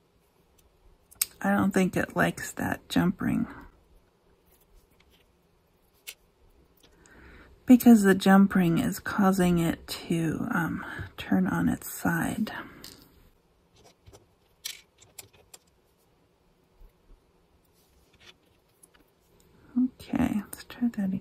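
Paper and lace rustle softly under busy hands.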